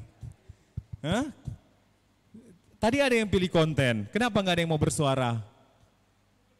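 A man speaks with animation into a microphone over loudspeakers.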